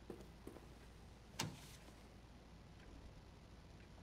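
Paper rustles as a sheet is picked up.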